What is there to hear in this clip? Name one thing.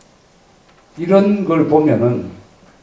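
An elderly man speaks calmly into a microphone, heard through a loudspeaker.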